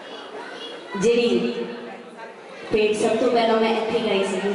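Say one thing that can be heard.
A young woman sings loudly through a microphone.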